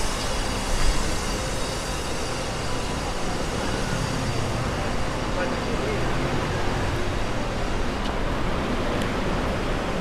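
Cars roll slowly along the street.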